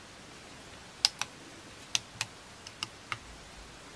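A finger taps and clicks on a plastic battery casing several times.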